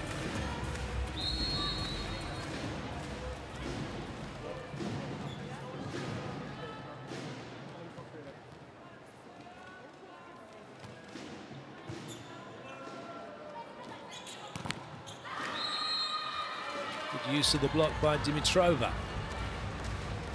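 A large crowd murmurs and cheers in a big echoing arena.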